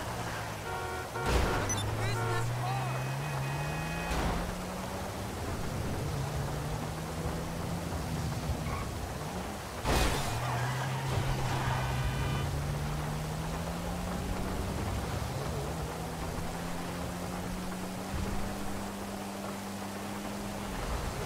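A car engine revs up and shifts gears repeatedly as the car speeds along.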